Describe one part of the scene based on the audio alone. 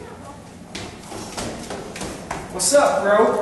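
Footsteps thud down concrete stairs in an echoing stairwell.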